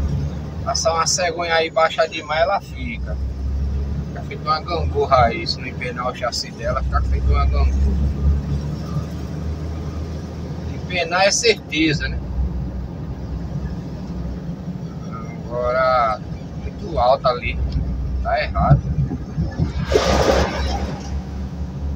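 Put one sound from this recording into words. A vehicle engine rumbles low and steady from inside the cab.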